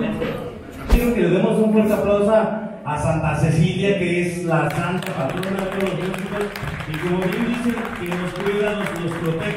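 A man sings into a microphone, heard over loudspeakers in a large room.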